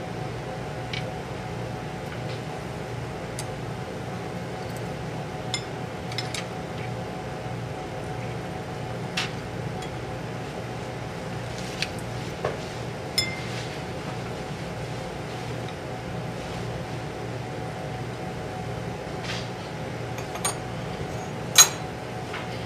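Cutlery and chopsticks clink lightly against plates.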